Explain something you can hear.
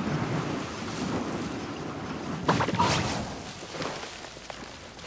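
A magical burst crackles and fizzes.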